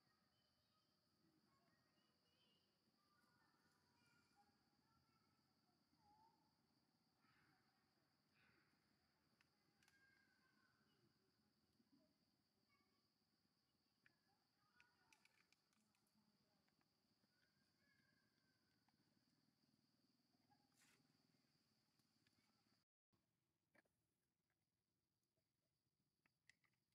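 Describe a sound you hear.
Dry leaves rustle softly nearby.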